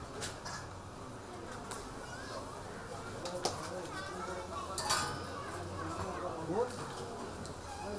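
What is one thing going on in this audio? A metal utensil scrapes and clinks against a pan.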